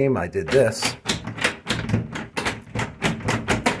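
A door handle rattles and clicks as it is turned.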